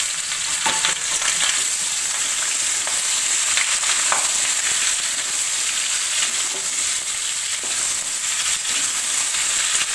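A metal spatula scrapes and stirs potatoes in a metal pan.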